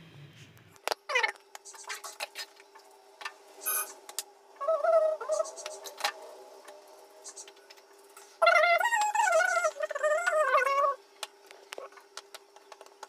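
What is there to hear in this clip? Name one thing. Utensils click and tap on a counter.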